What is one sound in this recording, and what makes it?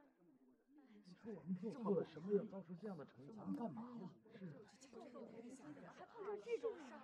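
A group of men murmur and talk among themselves.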